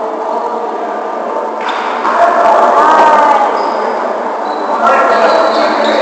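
A crowd of players shouts and calls out in a large echoing gym.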